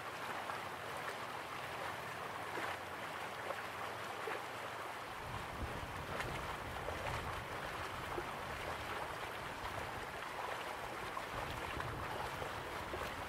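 Water splashes steadily down a small waterfall into a pool.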